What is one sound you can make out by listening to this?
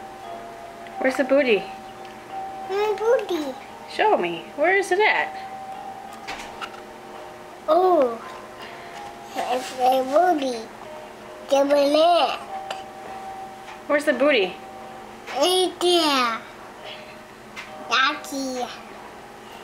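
A woman reads aloud close by in a lively, sing-song voice.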